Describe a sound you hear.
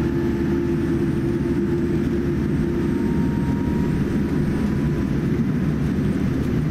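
A jet airliner's engines hum and rumble steadily from inside the cabin as the plane taxis.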